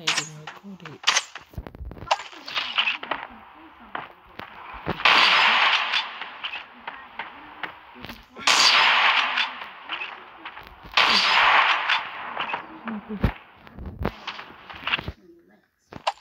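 Gunshots crack loudly and sharply.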